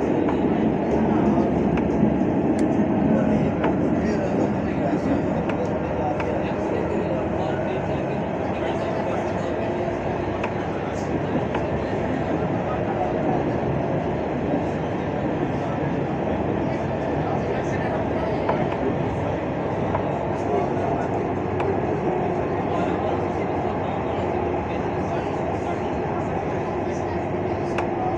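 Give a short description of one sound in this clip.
A train rumbles and hums steadily while riding along the tracks.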